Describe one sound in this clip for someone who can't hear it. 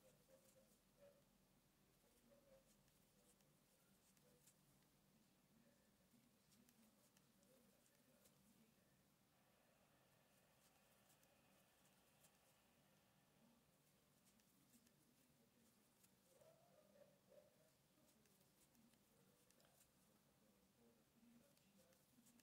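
A crochet hook softly ticks and rustles through cotton thread.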